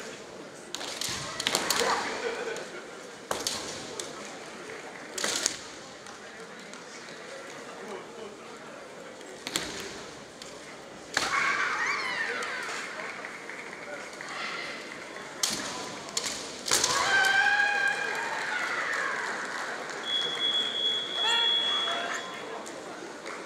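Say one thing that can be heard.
Fencers shout loudly in a large echoing hall.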